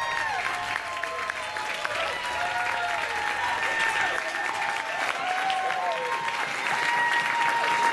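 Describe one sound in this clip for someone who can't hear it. An audience claps and applauds loudly.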